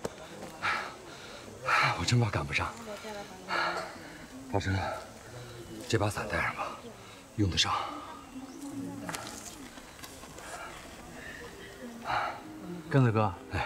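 A middle-aged man speaks with animation up close.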